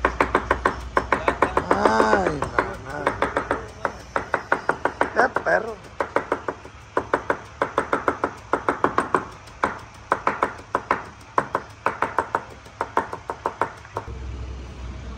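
A knife chops rapidly on a wooden cutting board.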